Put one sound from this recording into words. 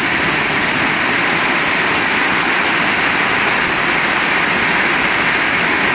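Rain drums on a metal roof overhead.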